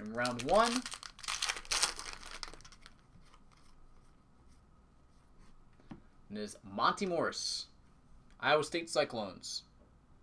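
Stiff cards rustle and slide against each other.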